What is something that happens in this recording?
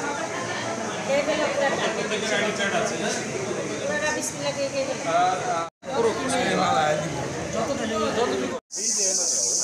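Young children chatter close by.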